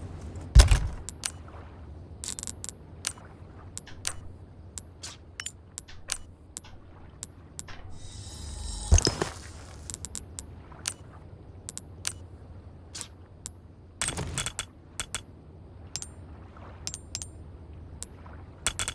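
Short electronic menu clicks tick repeatedly.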